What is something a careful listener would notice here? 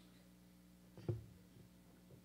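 A microphone thumps as a man adjusts it.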